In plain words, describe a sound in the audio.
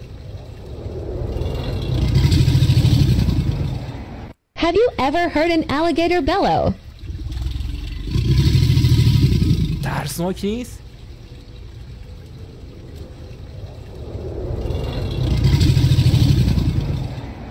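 An alligator bellows with a deep, low rumble.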